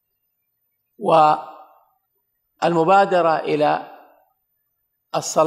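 A man speaks calmly into a microphone, with pauses, in a large echoing hall.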